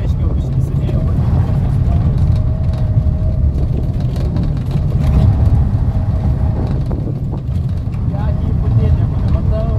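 Tyres squeal as a car turns sharply.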